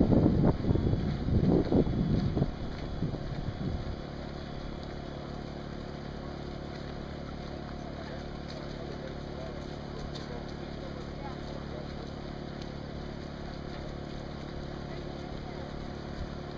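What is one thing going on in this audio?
Runners' footsteps patter on wet pavement outdoors.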